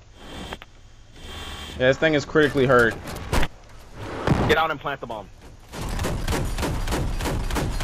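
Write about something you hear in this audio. A heavy cannon fires in short bursts.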